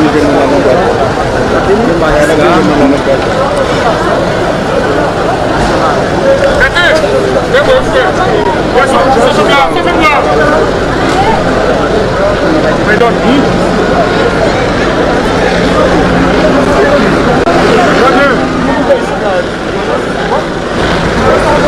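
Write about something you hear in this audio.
A crowd of people talks and shouts outdoors.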